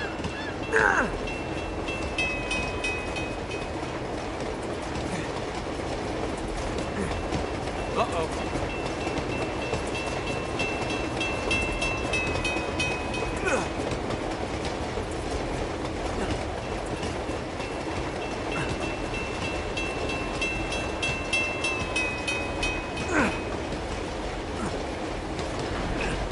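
A freight train rumbles and clatters steadily along the tracks.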